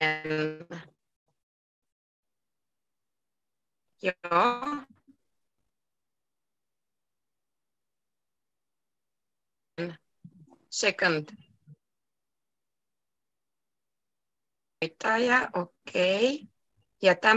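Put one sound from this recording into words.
A young woman speaks calmly over an online call, in short bursts with pauses.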